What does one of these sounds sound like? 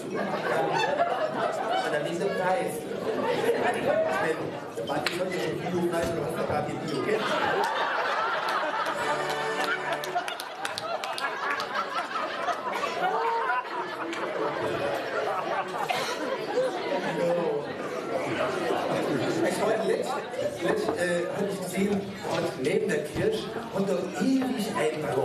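A man speaks with animation through a headset microphone over loudspeakers in a hall.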